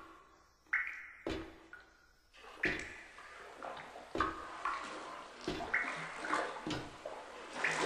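Heavy footsteps thud slowly on a hard floor.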